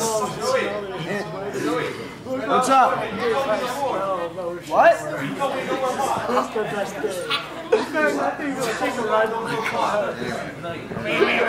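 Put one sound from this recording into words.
Several young men talk and laugh together close by in a lively way.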